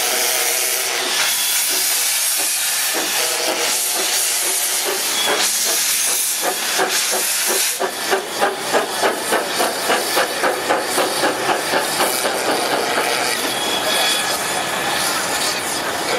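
A steam locomotive chuffs in a quick, rhythmic beat as it pulls away.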